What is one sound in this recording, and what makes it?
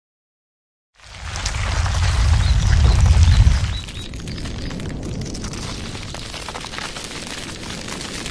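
Electric energy crackles and rumbles along the ground.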